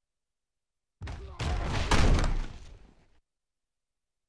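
Football players crash together in a tackle.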